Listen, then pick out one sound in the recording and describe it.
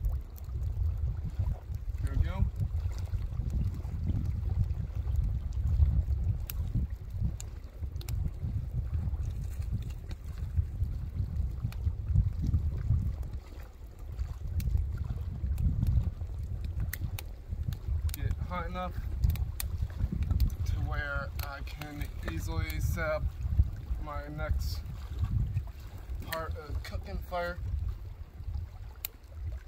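A small fire crackles and pops.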